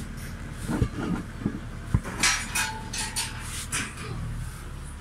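Close knocks and rustles come from a phone being handled.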